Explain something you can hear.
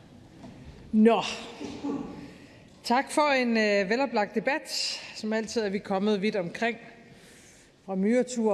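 A woman speaks calmly through a microphone in a large room.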